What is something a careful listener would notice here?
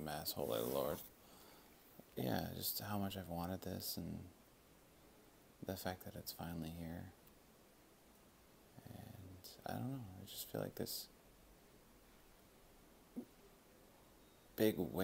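A man speaks close by in short, tired phrases with pauses between them.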